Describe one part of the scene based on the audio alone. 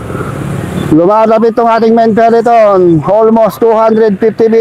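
A police motorcycle siren wails, rising and falling.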